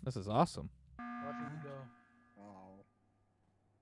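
An alarm blares briefly.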